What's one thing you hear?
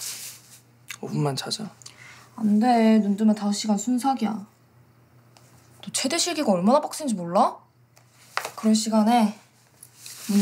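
A young woman talks calmly and closely.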